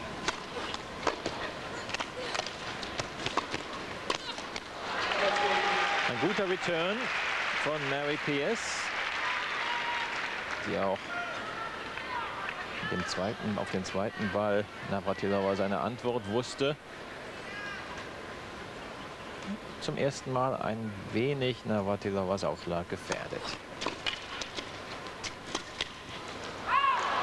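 Tennis balls are struck with sharp pops of the racket.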